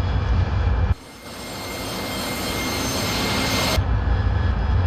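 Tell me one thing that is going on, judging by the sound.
A jet engine roars with a bright hissing rush, heard from outside.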